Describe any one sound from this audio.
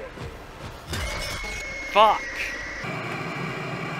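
A robotic creature lets out a loud, shrill screech.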